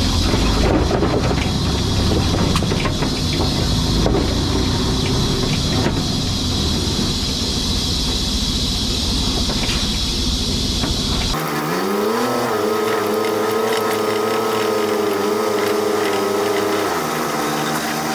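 A heavy truck engine rumbles steadily close by.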